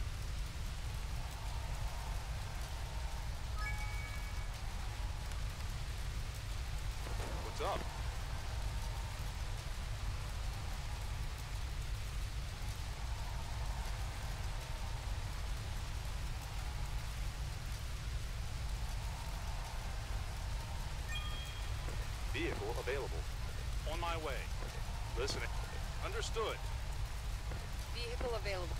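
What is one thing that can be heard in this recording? Fire hoses spray water steadily.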